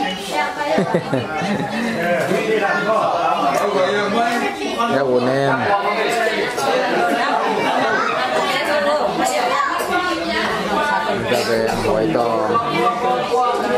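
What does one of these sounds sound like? Women and children talk and chatter close by.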